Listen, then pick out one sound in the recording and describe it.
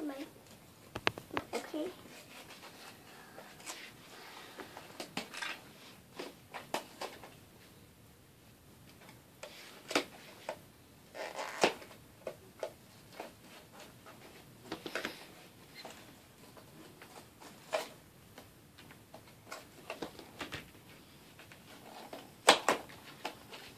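Small plastic toys click and tap on a table.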